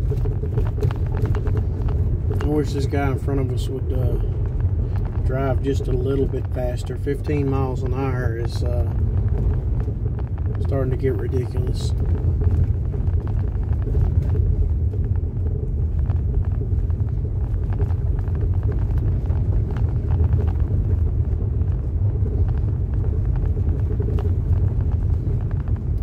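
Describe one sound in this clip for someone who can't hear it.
Tyres rumble and crunch over a dirt road.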